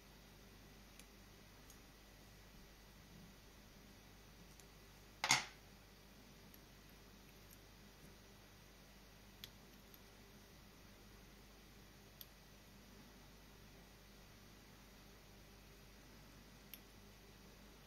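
A metal tool clicks and taps softly.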